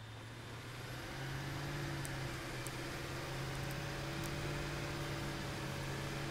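A vehicle engine idles with a steady low hum.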